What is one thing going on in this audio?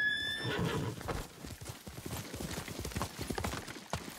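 A horse's hooves thud on the ground.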